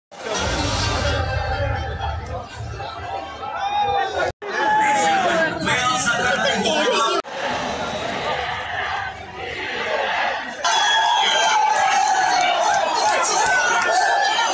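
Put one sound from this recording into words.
A large stadium crowd cheers and chants loudly outdoors.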